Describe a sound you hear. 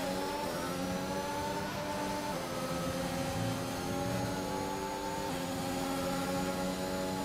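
A racing car engine screams at high revs, dropping in pitch as it shifts up through the gears.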